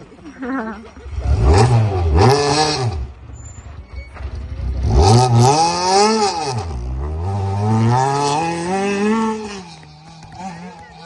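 A second rally car engine revs loudly and roars away.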